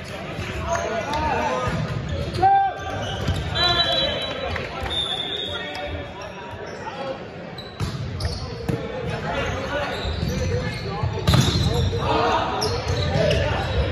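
Young players call out to each other in a large echoing gym.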